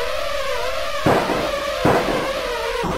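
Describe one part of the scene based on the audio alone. A pistol fires two loud shots.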